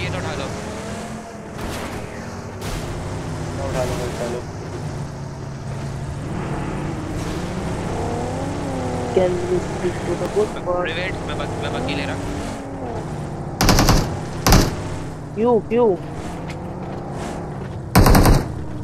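A car engine drones steadily.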